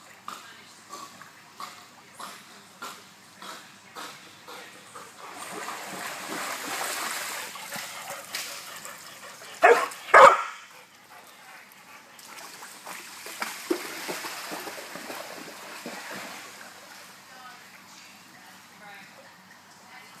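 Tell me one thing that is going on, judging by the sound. A dog paddles through water with soft splashes.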